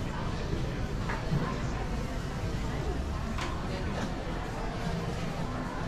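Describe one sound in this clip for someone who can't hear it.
Shoppers murmur and chatter nearby in a busy, echoing space.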